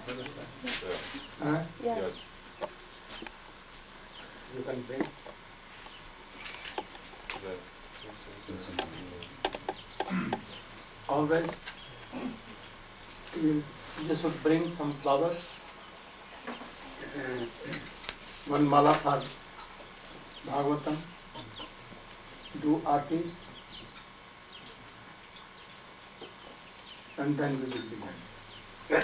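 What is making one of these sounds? An elderly man speaks calmly into a microphone, with pauses between phrases.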